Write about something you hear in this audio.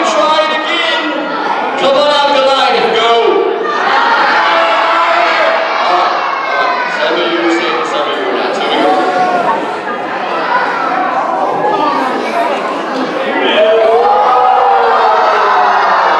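A man speaks with animation through a handheld microphone and loudspeaker.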